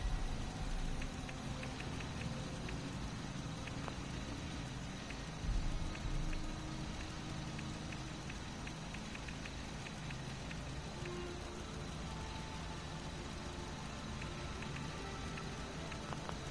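Soft menu clicks tick in quick runs.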